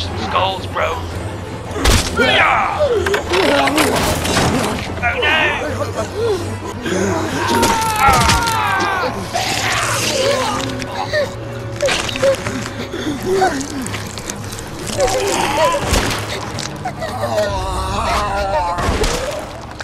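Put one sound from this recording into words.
Zombies snarl and growl close by.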